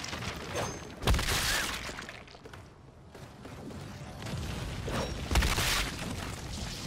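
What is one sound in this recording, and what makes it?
An explosion booms and fades.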